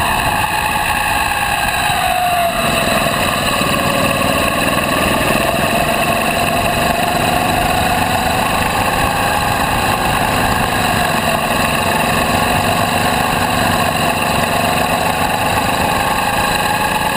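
A go-kart engine buzzes loudly up close, its pitch rising and falling with speed.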